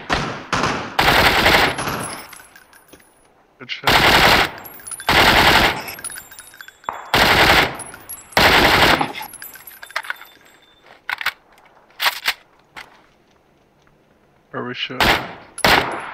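Loud rifle shots ring out one after another.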